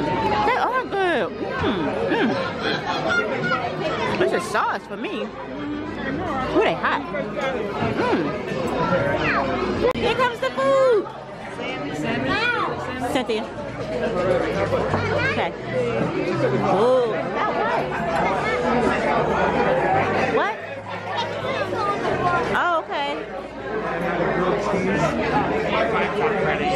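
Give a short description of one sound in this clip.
A crowd of adults and children chatters all around.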